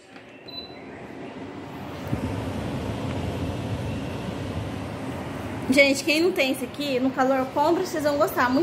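An air cooler's fan starts up and blows with a steady whoosh.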